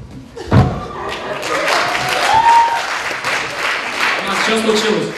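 An audience laughs and cheers.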